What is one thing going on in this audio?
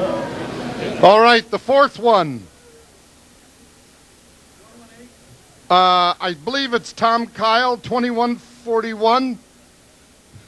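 An elderly man speaks with good humour through a microphone.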